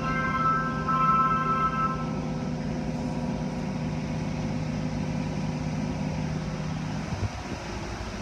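Water sprays and drums against a car window.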